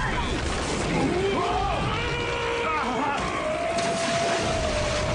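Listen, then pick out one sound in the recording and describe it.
A robot shouts in a deep voice.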